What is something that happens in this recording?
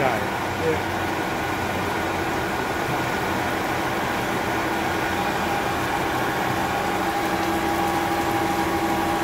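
A drill bit grinds into spinning metal with a harsh scraping whine.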